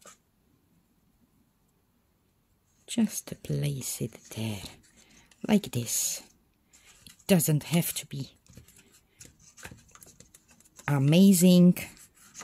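Thin fabric rustles softly as it is wrapped by hand.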